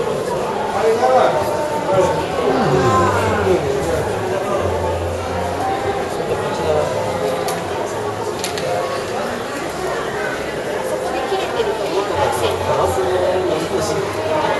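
A crowd of people chatter nearby in a large indoor space.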